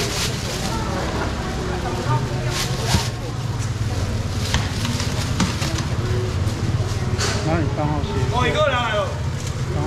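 Plastic bags rustle.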